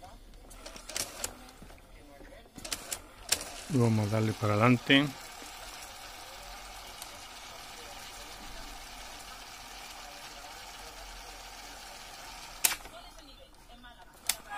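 Plastic cassette deck keys click as they are pressed down.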